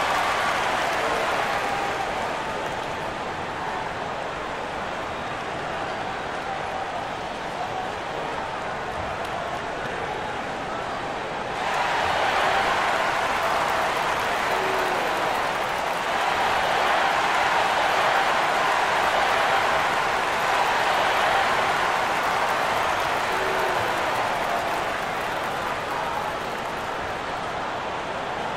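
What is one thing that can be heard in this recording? A large crowd murmurs and cheers in a big echoing arena, swelling louder partway through.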